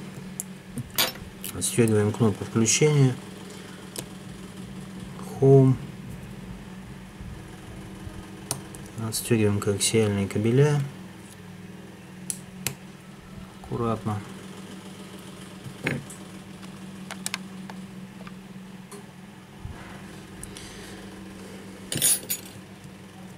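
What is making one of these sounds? A small metal tool clicks and taps against a phone's frame.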